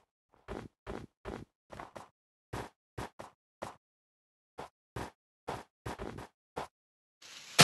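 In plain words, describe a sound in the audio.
Footsteps crunch on snow in quick steps.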